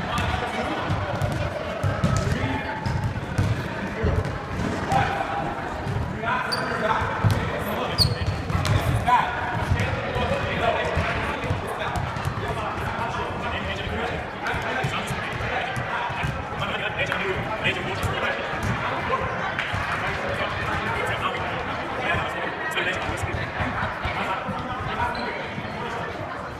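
Young women chatter and call out in a large echoing hall.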